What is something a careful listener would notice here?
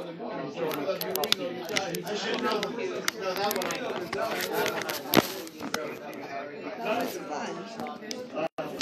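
Several elderly men talk and chatter nearby in a room with some echo.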